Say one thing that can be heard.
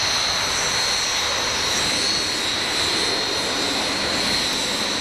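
Jet engines whine loudly as jets taxi nearby.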